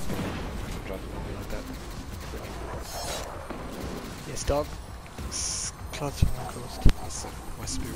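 Energy weapons fire in sharp, crackling blasts.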